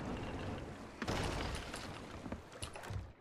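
Waves splash against a ship.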